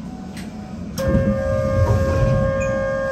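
Train brakes squeal with a high steady whine.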